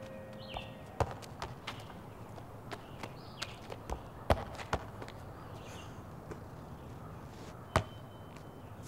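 A football thuds sharply as it is kicked, again and again.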